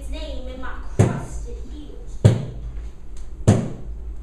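Heavy thuds strike a stage floor.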